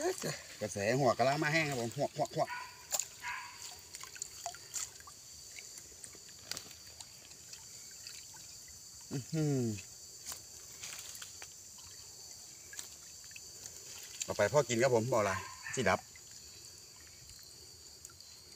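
Water splashes and sloshes as a net moves through shallow water.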